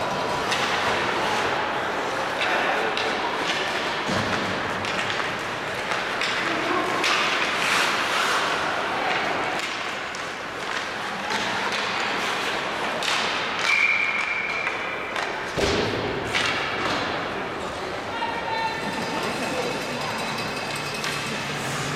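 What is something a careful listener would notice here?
Sounds echo around a large, mostly empty arena.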